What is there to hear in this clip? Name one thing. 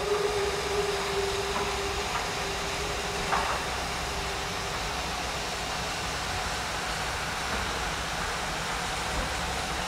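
A steam locomotive chugs heavily in the distance.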